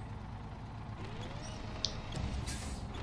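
A crane motor whines, rising in pitch and then holding steady.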